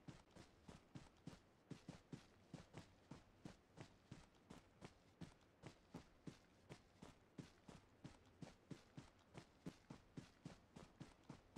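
A figure crawls through tall grass with steady, rhythmic rustling.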